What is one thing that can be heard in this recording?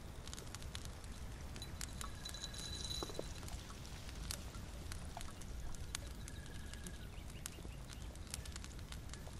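A small fire crackles softly with sharp pops.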